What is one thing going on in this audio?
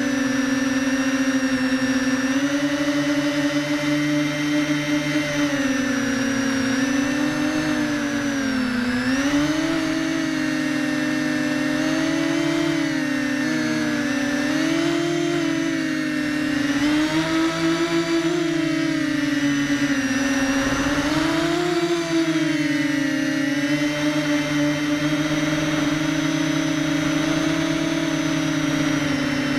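An FPV quadcopter drone's motors whine, rising and falling in pitch.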